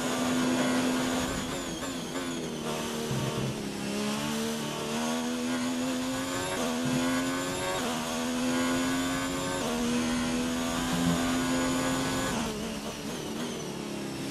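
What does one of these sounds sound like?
A racing car engine screams at high revs, rising in pitch through quick gear changes and dropping as it slows.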